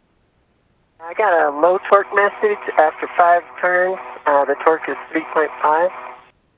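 A woman speaks calmly over a crackly radio link.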